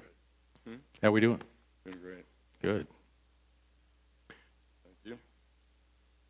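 An older man speaks into a microphone, in short phrases.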